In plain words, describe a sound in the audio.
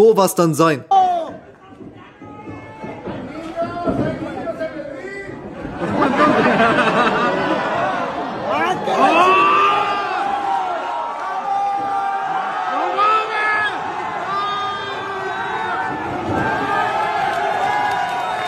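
A crowd of spectators shouts and cheers nearby in a large echoing hall.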